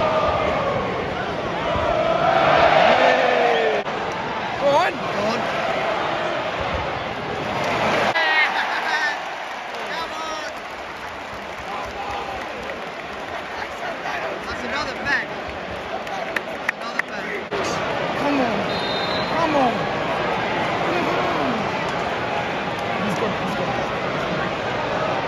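A large crowd chants and sings loudly in an open stadium.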